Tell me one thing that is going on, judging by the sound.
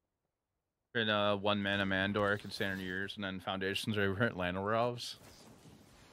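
A man speaks calmly into a close microphone.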